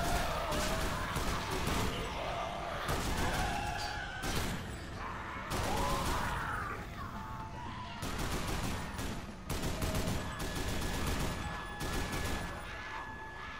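A heavy machine gun fires in rapid, booming bursts.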